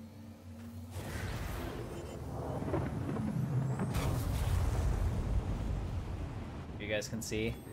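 A spaceship's drive roars and rushes as it speeds up.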